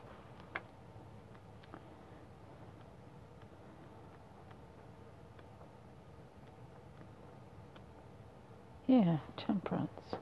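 Paper pages of a book rustle as they are turned.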